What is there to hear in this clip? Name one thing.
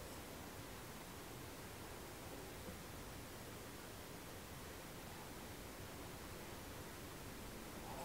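A paintbrush softly dabs and brushes on paper.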